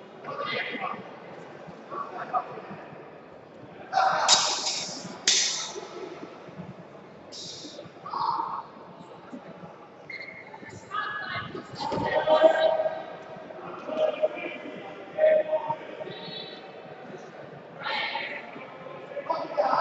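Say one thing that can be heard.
Men and women talk and call out in a large echoing hall.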